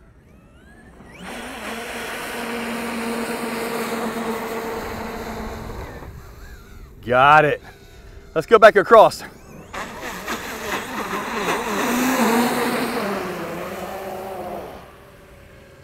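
Water sprays and hisses as a toy car skims across a pond.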